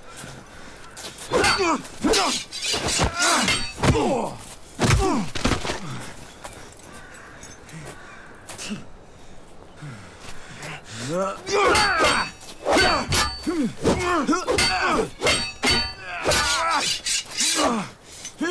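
Steel swords clash and ring.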